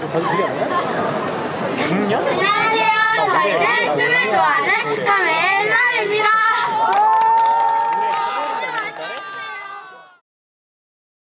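Young women speak together with animation through a microphone and loudspeaker.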